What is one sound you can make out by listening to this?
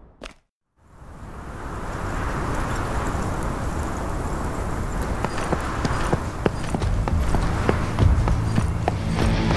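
Footsteps run on stone pavement.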